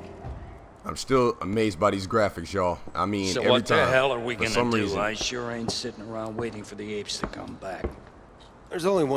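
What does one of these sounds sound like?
An older man speaks gruffly.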